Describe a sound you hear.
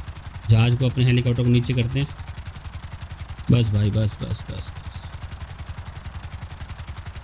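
A helicopter's rotor chops steadily overhead.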